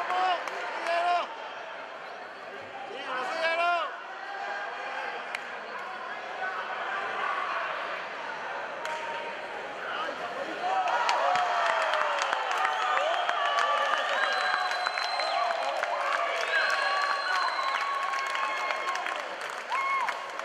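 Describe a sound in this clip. Men shout loudly from ringside.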